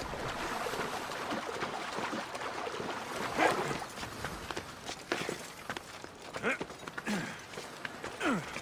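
Hands and feet scrape and thud on rock during a climb.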